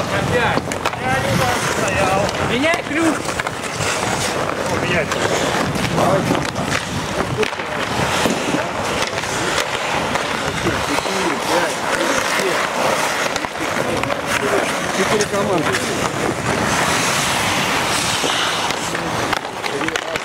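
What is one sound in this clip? Men call out and shout to each other across the rink.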